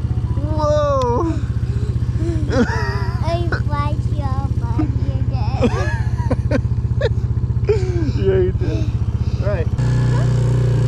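A small engine idles steadily, close by.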